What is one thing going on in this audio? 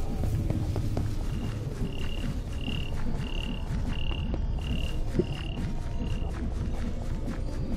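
Footsteps patter quickly across the ground in a game.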